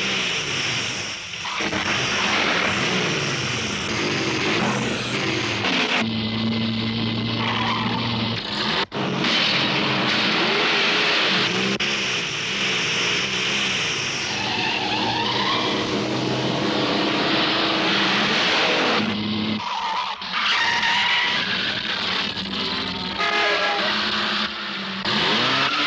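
Car engines roar as cars race along a road.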